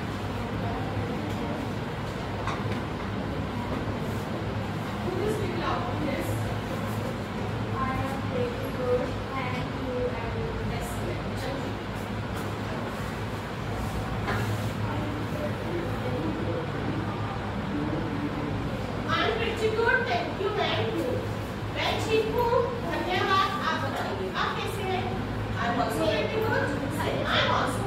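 Children murmur and chatter in the background.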